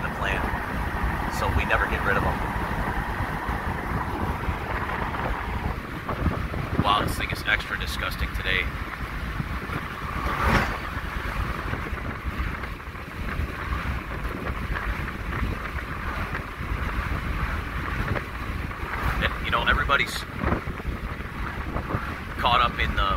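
Wind rushes through an open window of a moving truck.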